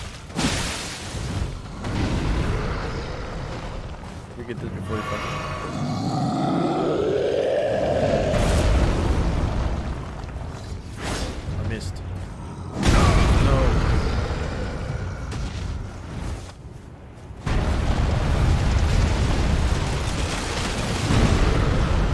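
A sword clashes and strikes heavily.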